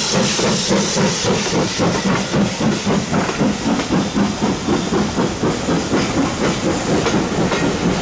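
Passenger coach wheels clack over rail joints as a train rolls past.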